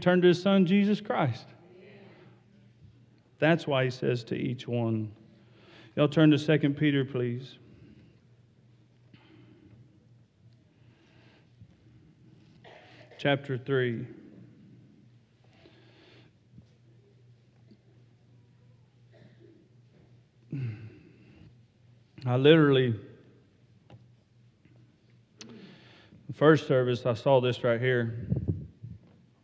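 A middle-aged man speaks slowly into a microphone in a large hall, with long pauses.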